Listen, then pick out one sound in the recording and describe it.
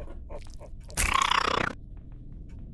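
A weapon is picked up with a short loud rustle.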